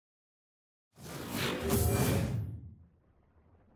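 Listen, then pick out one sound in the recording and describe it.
A game console plays a swelling startup chime.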